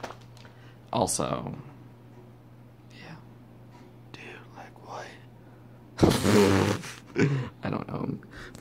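A young man speaks close to the microphone in a casual, animated way.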